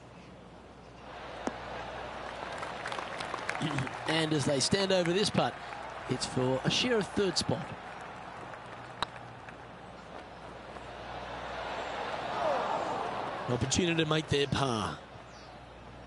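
A crowd cheers and applauds, swelling and fading.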